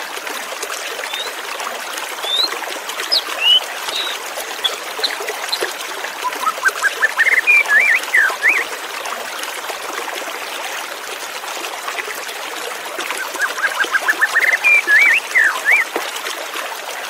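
A white-rumped shama sings loud, whistled phrases.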